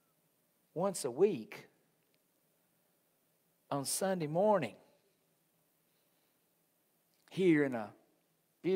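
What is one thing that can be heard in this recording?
A middle-aged man speaks calmly into a microphone in short phrases with long pauses.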